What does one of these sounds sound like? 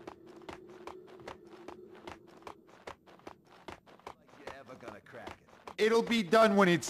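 Quick footsteps run on a hard concrete floor in a large echoing space.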